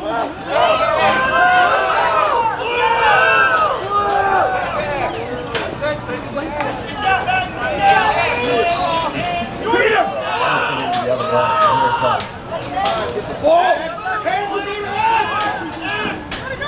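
Spectators cheer and shout from the sidelines.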